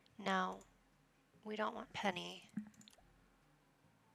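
A soft interface click sounds as a menu page changes.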